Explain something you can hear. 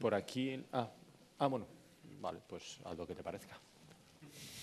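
A man speaks through a microphone in a large room, pausing between phrases.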